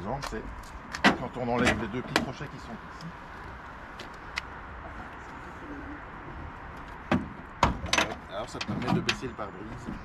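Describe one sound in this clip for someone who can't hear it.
Metal clanks as a man handles a jeep's windscreen.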